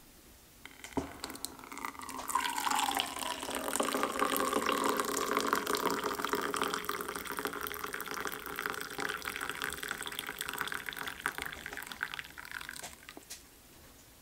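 Hot liquid pours and splashes into a cup.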